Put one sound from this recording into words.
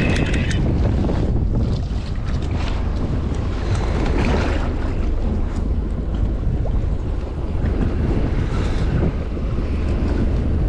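Wind buffets loudly outdoors on open water.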